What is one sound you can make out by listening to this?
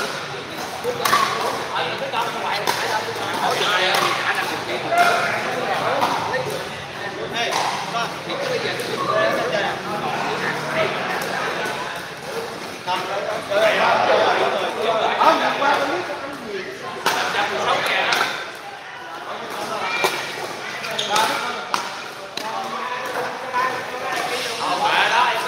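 Men talk and call out nearby in a large echoing hall.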